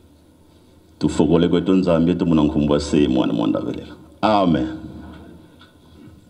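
A man speaks loudly through a loudspeaker, with echo.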